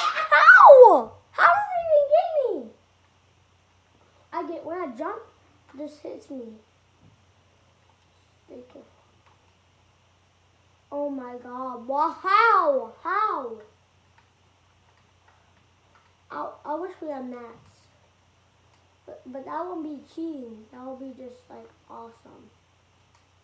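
A boy talks excitedly close by, in bursts with pauses.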